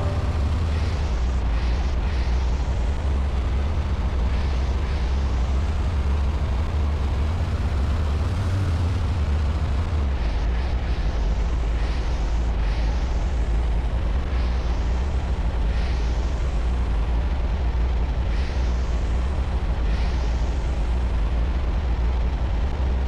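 A propeller plane engine drones steadily at a low pitch.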